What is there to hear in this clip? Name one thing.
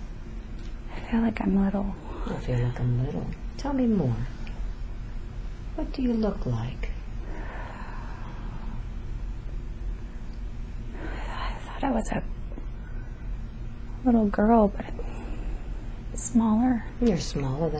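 A young woman mumbles and moans in her sleep close by.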